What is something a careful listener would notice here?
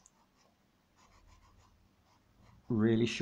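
Fingers rub chalk pastel softly across paper.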